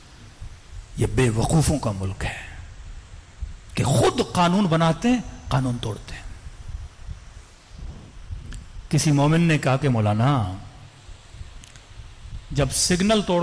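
A man speaks with feeling into a microphone, his voice amplified in a large room.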